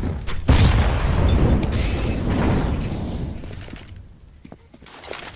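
Footsteps thud on a stone street.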